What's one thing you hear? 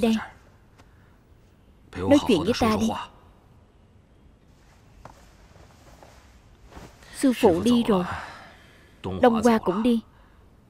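A man speaks in a calm, measured voice close by.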